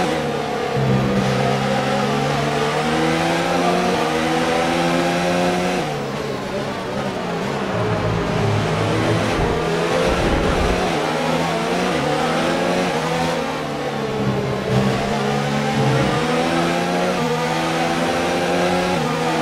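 A racing car engine roars close by, rising in pitch as it speeds up and dropping as it gears down.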